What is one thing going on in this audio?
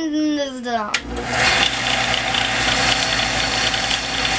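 A disc sander grinds against a small piece of material with a harsh, steady rasp.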